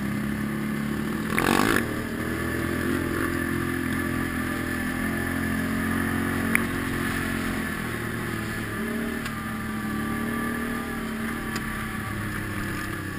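A quad bike engine hums steadily up close as it rides along.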